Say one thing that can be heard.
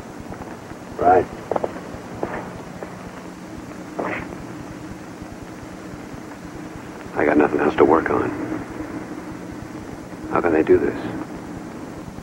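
A man speaks in short, calm phrases nearby.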